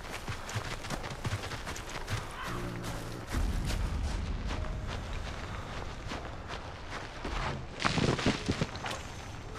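Footsteps rustle through tall grass and undergrowth.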